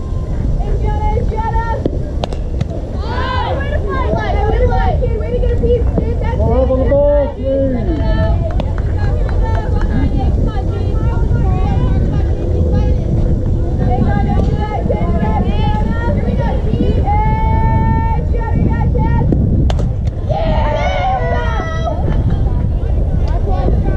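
Young girls shout and cheer nearby.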